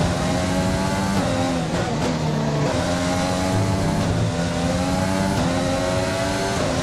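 A racing car engine screams at high revs, shifting gears up and down.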